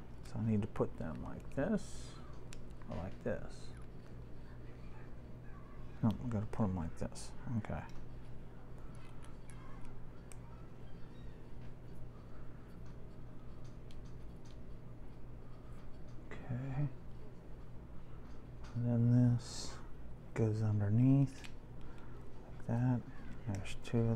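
Small plastic toy bricks click and rattle.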